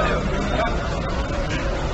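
A man talks on a phone.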